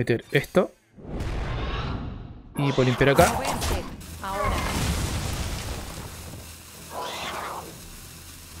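Magical game sound effects whoosh and shimmer.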